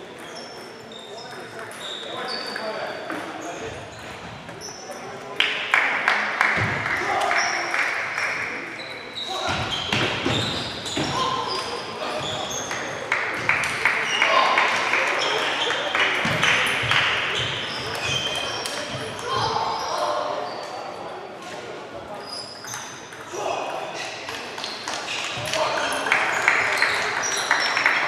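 A crowd of players and spectators chatters in the background.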